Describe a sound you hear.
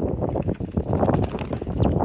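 A small bird flaps its wings against a hand.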